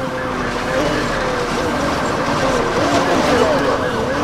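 A police siren wails nearby.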